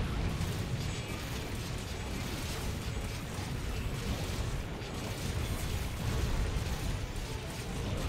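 Metal blades slash and strike in quick bursts.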